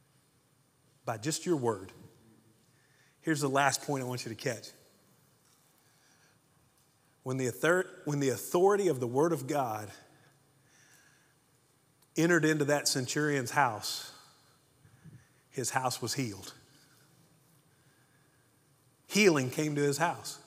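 A middle-aged man speaks with animation through a microphone in a large echoing hall, pausing between phrases.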